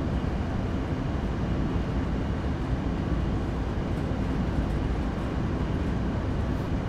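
Train wheels rumble and clack over the rails.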